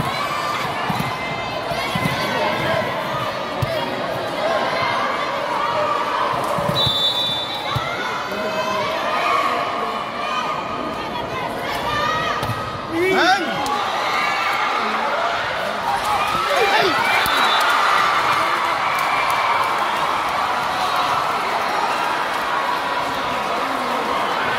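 A crowd of spectators chatters and cheers loudly in a large echoing hall.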